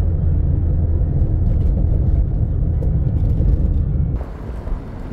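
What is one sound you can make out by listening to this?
A car drives along an asphalt road, heard from inside with a low rumble.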